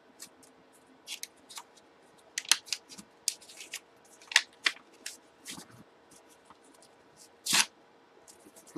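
Paper rips and rustles as a pack is torn open.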